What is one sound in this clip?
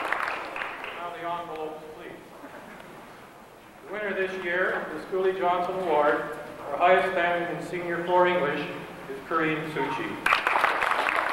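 An elderly man speaks into a microphone, reading out over a loudspeaker in a large hall.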